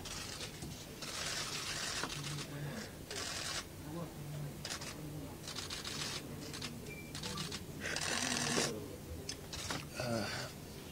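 A man sobs and weeps close to microphones.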